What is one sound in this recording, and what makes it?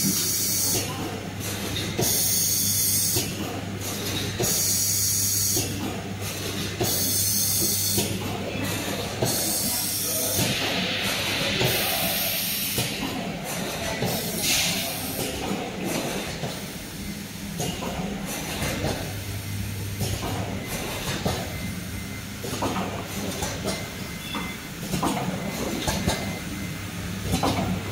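Machine parts click and clatter rapidly.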